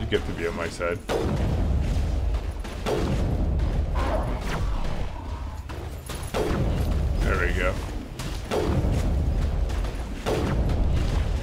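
Gunshots bang every couple of seconds, each followed by a short ringing echo.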